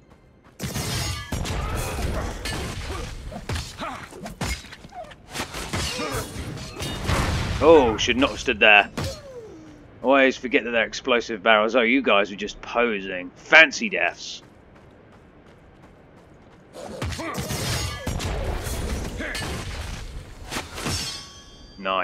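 Swords clash and blows strike in a fast fight.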